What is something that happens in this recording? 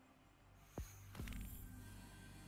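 A heavy magical burst booms.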